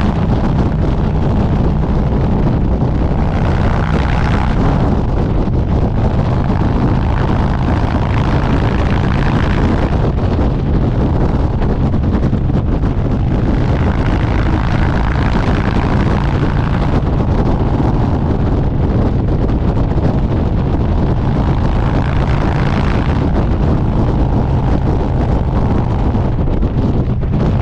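A motorcycle engine rumbles steadily close by at speed.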